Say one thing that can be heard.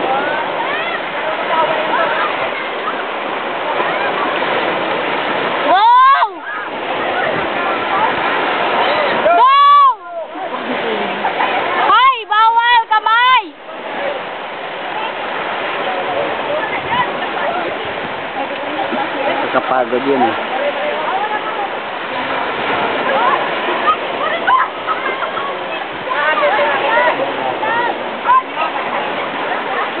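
Children shout and shriek playfully nearby.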